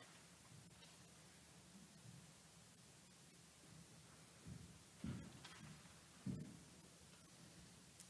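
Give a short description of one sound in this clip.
Footsteps tread across a hard floor in a large echoing hall.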